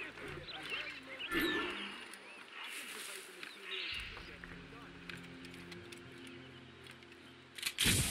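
Plants rustle as someone pushes through tall grass.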